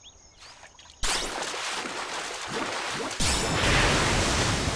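Water splashes loudly as a large fish bursts out of it.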